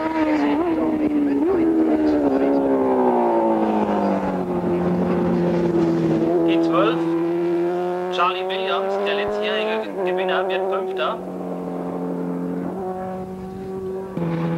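A motorcycle engine screams at high revs, rising and dropping in pitch as it changes gear and races past.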